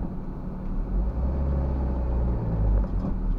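A car engine revs up as the car pulls forward in traffic.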